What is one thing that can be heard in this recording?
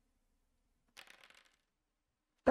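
Dice rattle and clatter as they are rolled.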